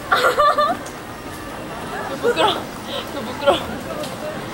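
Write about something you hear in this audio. Young women laugh and giggle close by.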